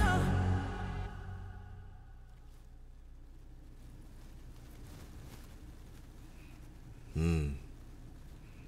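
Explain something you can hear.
A young man murmurs briefly close to a microphone.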